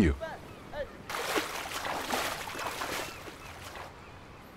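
Water splashes as something cuts through the sea.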